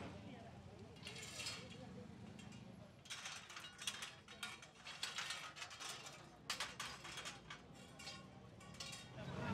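Metal railings clank as workers move them.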